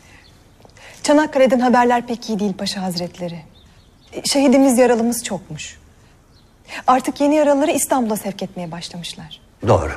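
A young woman speaks calmly and earnestly nearby.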